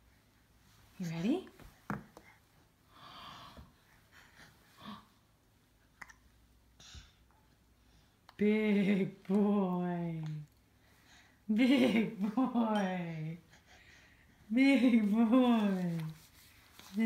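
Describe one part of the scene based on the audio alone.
A baby whines and fusses loudly in bursts close by.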